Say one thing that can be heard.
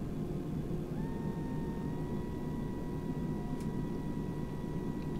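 A jet engine whine rises slightly in pitch and holds.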